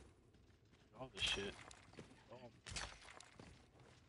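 A pickaxe strikes rock with sharp clinks.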